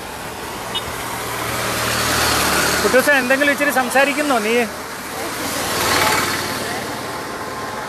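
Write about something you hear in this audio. A truck passes with tyres hissing on a wet road.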